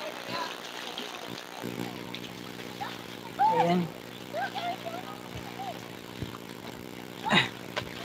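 A child splashes in shallow water.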